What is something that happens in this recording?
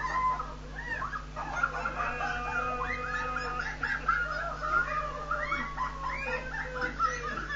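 People shriek and laugh as cold water hits them.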